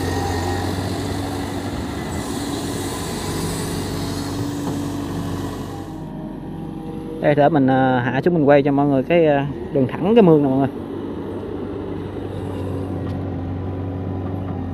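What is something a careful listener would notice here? A diesel excavator engine rumbles steadily nearby.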